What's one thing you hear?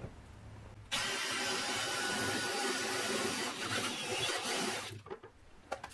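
A cordless drill whirs steadily as it drives a screw.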